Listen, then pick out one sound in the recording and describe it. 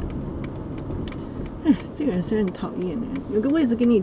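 A car drives slowly past nearby.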